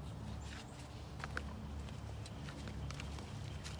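Footsteps crunch on dry leaves and twigs.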